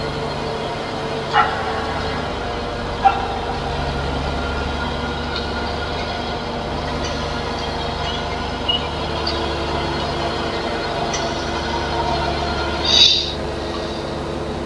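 A mower whirs as it cuts grass.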